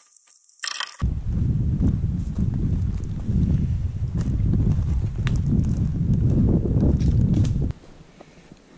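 Footsteps brush through forest undergrowth.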